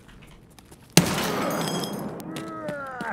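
A gun fires a loud shot that rings out.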